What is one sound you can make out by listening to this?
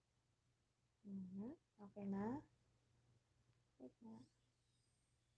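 A young woman reads aloud softly, close by.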